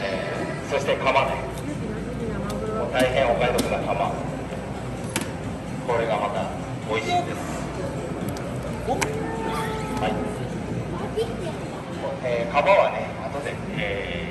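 A man talks with animation into a microphone nearby.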